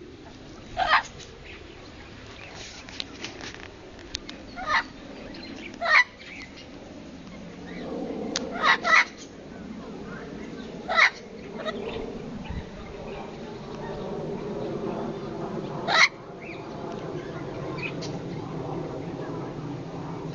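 Wind rustles through leaves outdoors.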